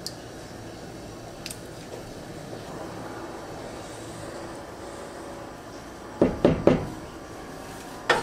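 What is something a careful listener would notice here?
A wooden spoon stirs a thick stew and knocks against a metal pot.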